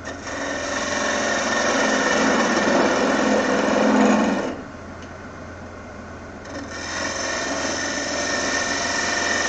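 A wood lathe hums steadily.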